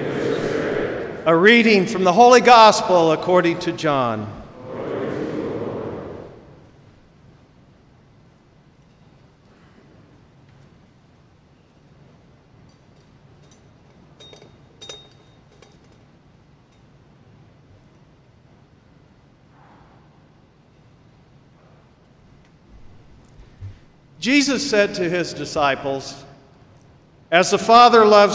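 An older man chants through a microphone in a large echoing hall.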